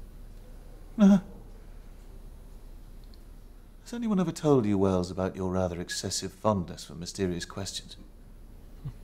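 A young man speaks quietly and earnestly nearby.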